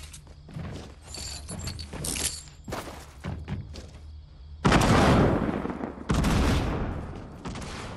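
A wooden door creaks open and shut.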